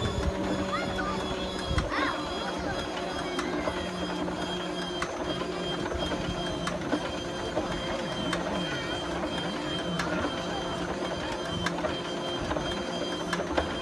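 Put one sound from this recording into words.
A large propeller engine idles with a loud, steady, rough rumble close by.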